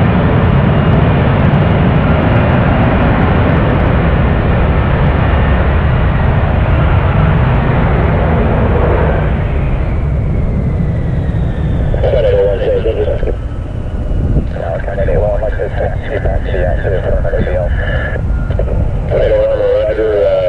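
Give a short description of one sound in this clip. A jet engine roars loudly as a jet aircraft hovers and sets down, then the roar drops to a lower rumble.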